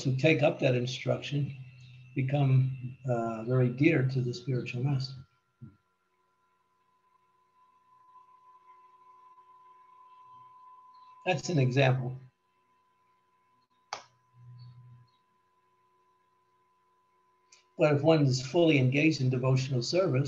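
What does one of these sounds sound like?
An elderly man speaks calmly over an online call, in bursts with pauses.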